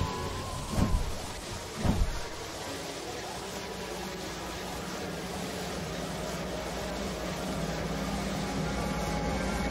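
A steady rushing whoosh like wind plays on.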